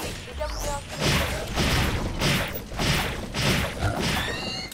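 Guns fire in repeated bursts.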